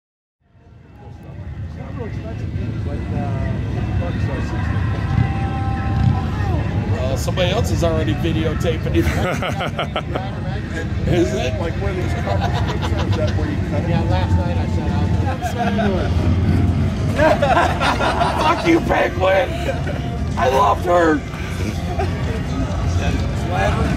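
Men talk and call out casually outdoors, close by.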